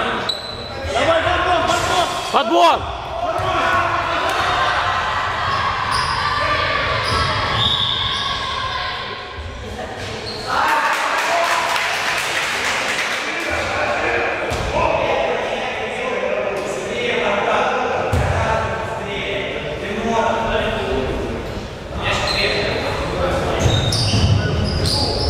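A crowd shouts and chatters in a large echoing hall.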